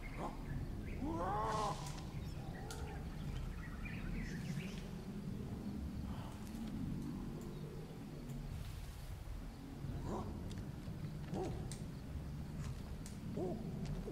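An ape hoots and screeches.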